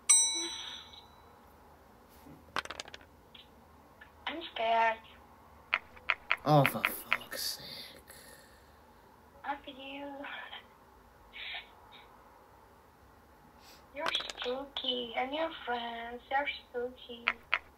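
Dice clatter as they roll.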